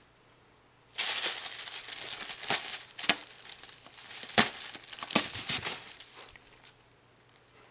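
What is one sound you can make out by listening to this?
A plastic bag rustles and crinkles loudly as a cat pushes into it.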